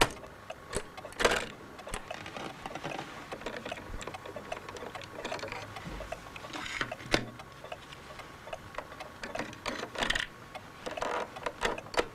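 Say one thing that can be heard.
Plastic cassettes rattle and clack as they are handled.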